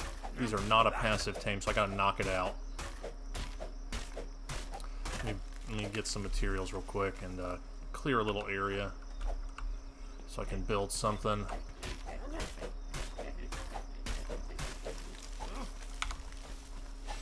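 A hatchet chops into a tree trunk with repeated dull thuds.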